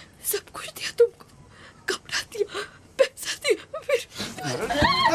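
A woman speaks in a weak, pleading voice close by.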